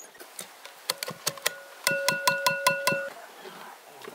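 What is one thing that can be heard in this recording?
A plastic lid knocks against a glass bowl, which rings.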